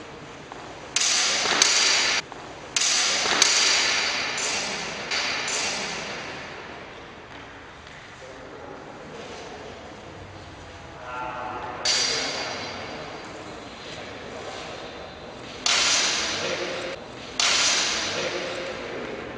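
Swords clash and clatter in a large echoing hall.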